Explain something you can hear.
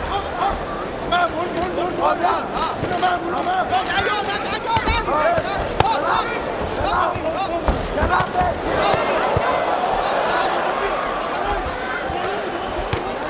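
Boxing gloves thud against bodies in quick blows.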